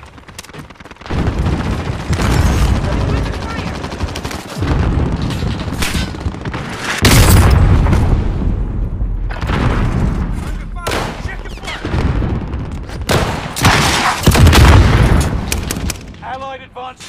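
Guns fire in rapid bursts with loud booming blasts.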